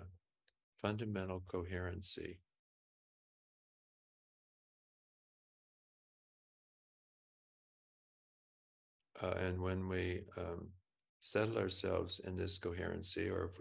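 An elderly man speaks calmly and slowly over an online call, with long pauses.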